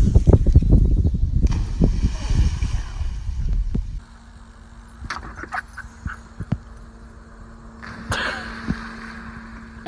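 A dog splashes into water.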